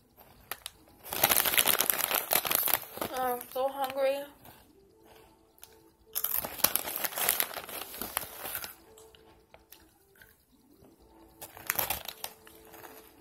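A chip bag crinkles and rustles.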